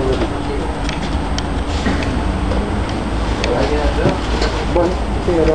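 Loose fittings rattle and clatter as the bus moves.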